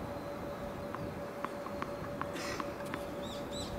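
A tennis ball bounces a few times on a hard court.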